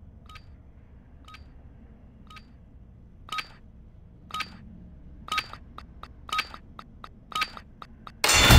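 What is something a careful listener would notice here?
Game countdown beeps tick once a second.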